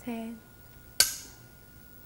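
A wooden game piece clacks sharply onto a board.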